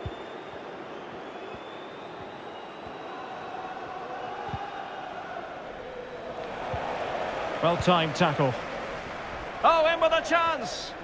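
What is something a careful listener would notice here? A large stadium crowd murmurs.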